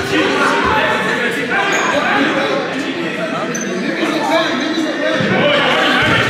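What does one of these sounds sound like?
Many people chatter and call out across a large echoing hall.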